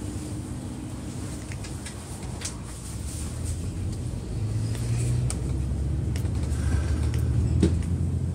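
A car rolls by on the road.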